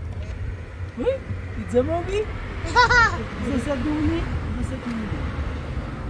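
A young child squeals and laughs excitedly.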